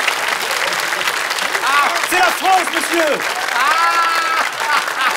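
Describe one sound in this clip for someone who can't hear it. An audience claps and cheers in a studio.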